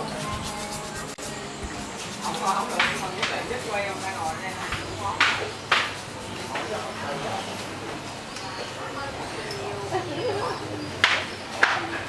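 Men and women chat nearby in a narrow street.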